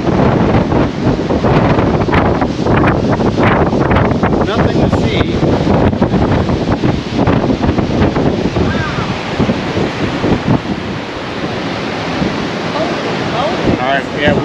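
Ocean waves crash and roar against rocks below.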